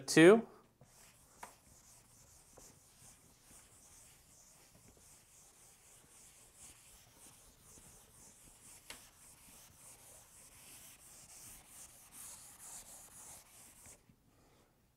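An eraser rubs across a blackboard with a steady swishing.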